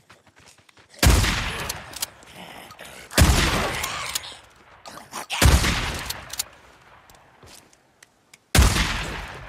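Loud pistol shots ring out one at a time, each echoing outdoors.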